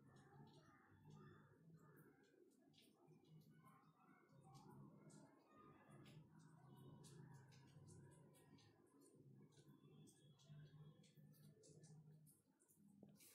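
A spatula scrapes and clatters against a metal wok.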